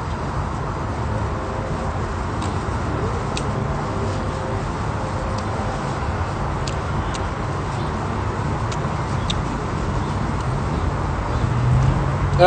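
A young man talks casually close to a phone microphone.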